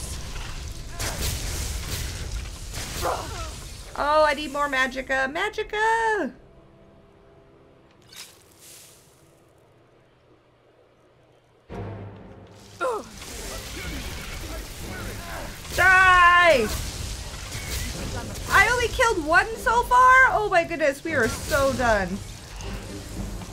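Magic spells crackle and whoosh in bursts.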